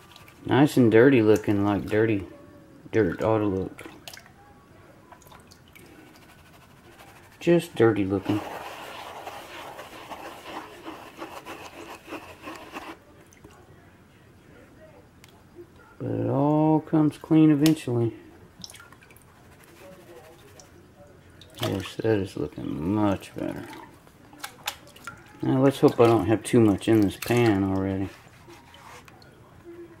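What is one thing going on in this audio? Water sloshes and splashes as a pan is swirled in a tub.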